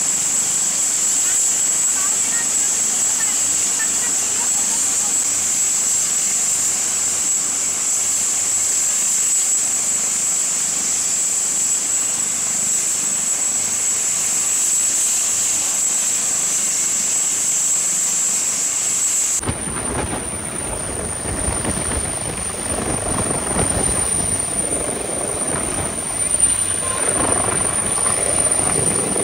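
A helicopter engine whines steadily at a high pitch.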